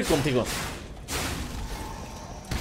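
A fiery blast bursts with a loud crackle.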